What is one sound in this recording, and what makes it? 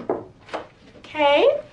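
A woman calls out loudly nearby.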